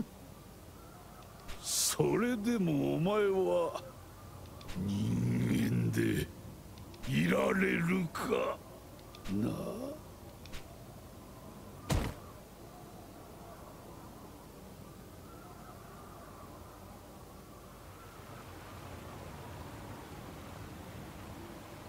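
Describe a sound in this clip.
Small waves lap gently at a shore.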